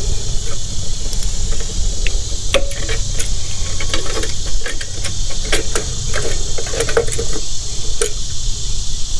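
Small metal parts click and rattle as they are handled.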